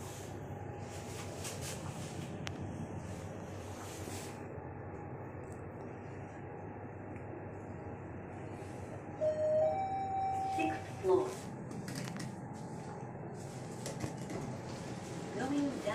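An elevator hums steadily as it rises.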